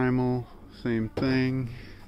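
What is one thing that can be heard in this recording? A hand handles a cardboard box.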